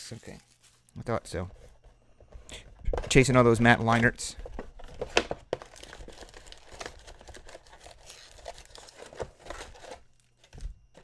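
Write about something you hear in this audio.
Foil card packs crinkle and tear as hands open them.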